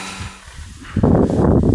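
A pitchfork scrapes and rustles through dry hay.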